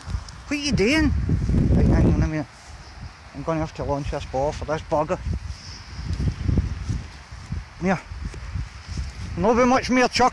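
A dog runs through long grass, rustling it.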